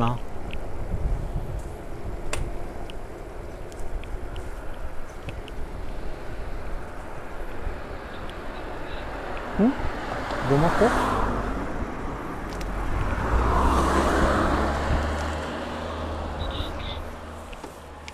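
Wind buffets the microphone outdoors.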